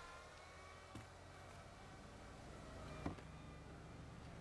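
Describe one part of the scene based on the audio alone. Wooden debris crashes and clatters as a building wall breaks apart.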